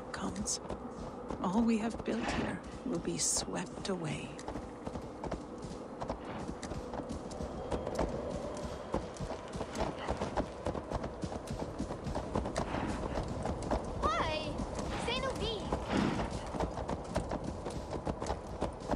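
Hooves crunch steadily on snow.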